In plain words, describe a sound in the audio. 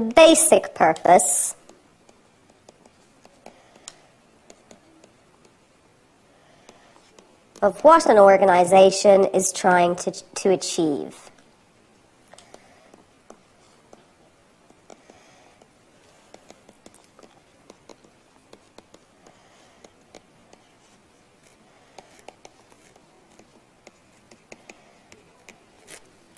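A pen scratches softly on a writing surface.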